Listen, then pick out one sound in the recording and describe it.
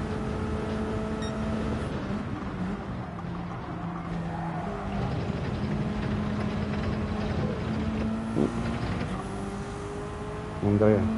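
A racing car engine roars steadily, its pitch shifting as it changes gear.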